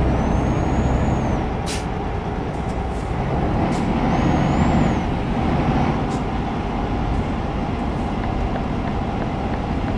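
A truck engine drones steadily while driving at speed.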